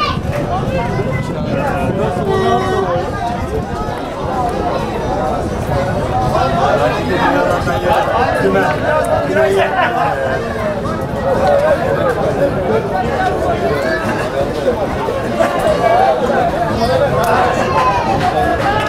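A crowd of men chatters and calls out close by, outdoors.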